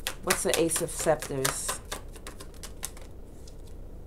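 Cards riffle and flap together as they are shuffled.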